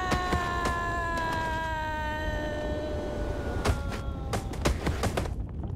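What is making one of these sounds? Light thumps sound as a figure scrambles up a stone wall.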